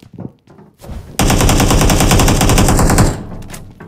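A loud burst of gunfire rattles close by.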